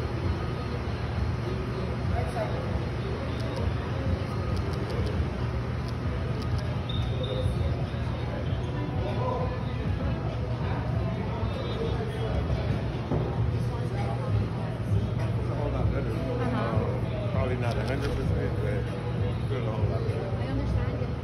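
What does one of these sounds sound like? A crowd of people chatters nearby in an echoing hallway.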